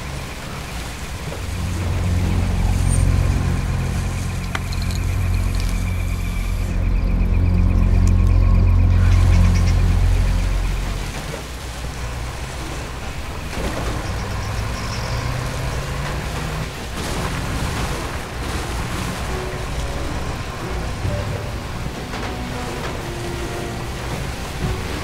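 Tyres rattle and bump over rough ground.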